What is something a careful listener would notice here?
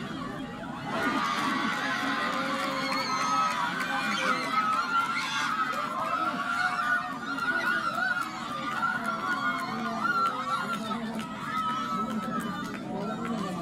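Young women shout and cheer excitedly on an open field.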